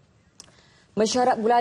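A woman reads out the news clearly into a microphone.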